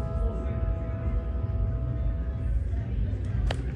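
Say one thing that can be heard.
An electric piano plays sustained notes.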